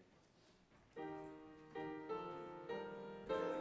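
A piano plays chords.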